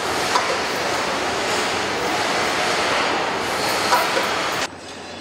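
A power wrench rattles in short bursts.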